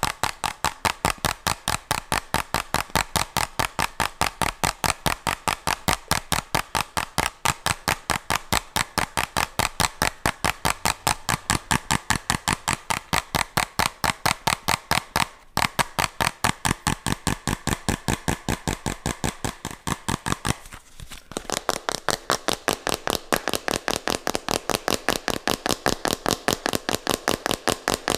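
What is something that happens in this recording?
Fingernails tap rapidly on a plastic bottle close to a microphone.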